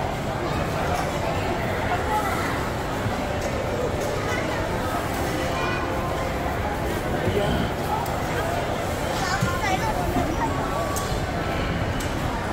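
A crowd of people chatters in a busy indoor space.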